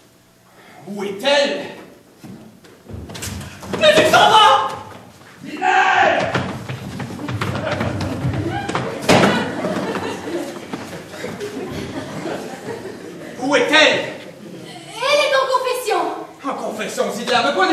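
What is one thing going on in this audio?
A man speaks loudly and with animation in an echoing hall.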